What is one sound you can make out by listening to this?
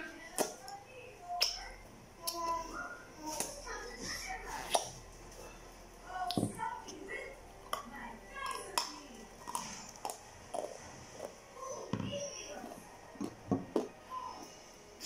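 A woman crunches and chews ice up close.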